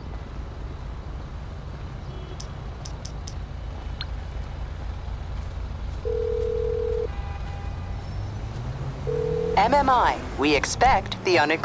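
Footsteps crunch on grass.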